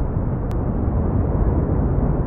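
Waves crash against rocks.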